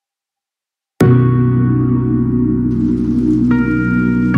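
Calm music plays with steady, sustained tones.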